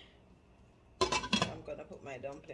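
A metal pot lid clanks against a pot.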